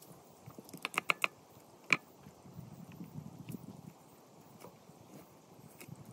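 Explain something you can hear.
A cleaver chops meat on a wooden block with sharp knocks.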